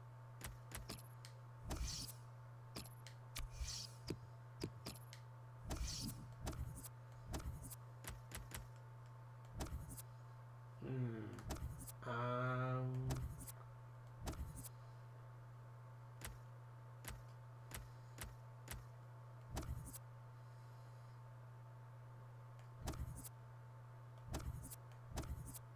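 Short, sharp menu clicks tick now and then as selections change.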